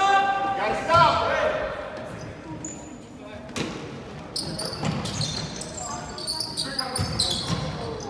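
A basketball bounces with dull thuds on the floor.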